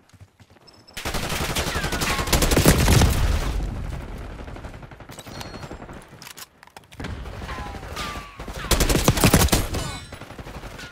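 A rifle fires loud rapid bursts at close range.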